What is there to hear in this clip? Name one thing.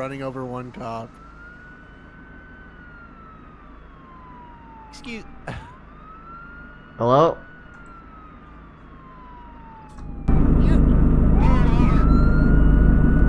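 A police siren wails and swoops up and down nearby.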